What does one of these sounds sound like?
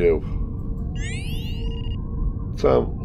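A bright electronic chime sounds as a menu opens.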